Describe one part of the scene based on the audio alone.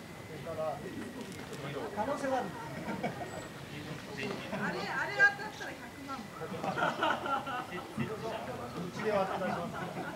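Several young men talk and chatter outdoors.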